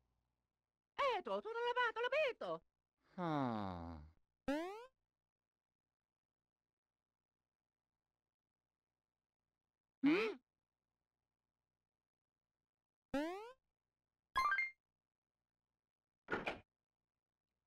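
Cartoonish electronic chirps and jingles play from a video game.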